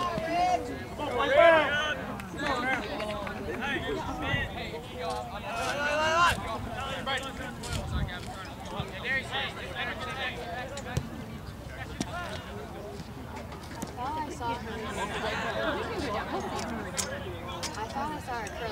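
A few spectators close by talk and call out loudly outdoors.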